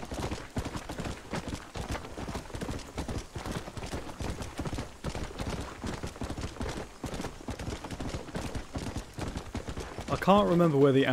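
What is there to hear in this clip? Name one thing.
A horse's hooves clop steadily on dirt.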